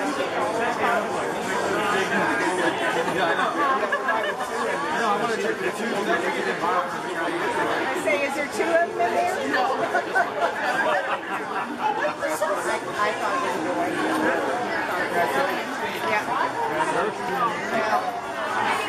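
A crowd chatters all around.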